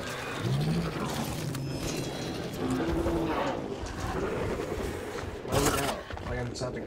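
A large creature's heavy footsteps thud.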